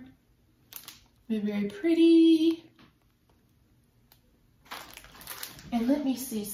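A plastic bag of small beads crinkles and rustles.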